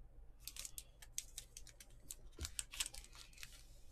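A foil wrapper crinkles.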